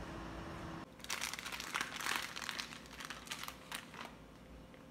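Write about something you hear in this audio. A plastic food packet crinkles and rustles close by.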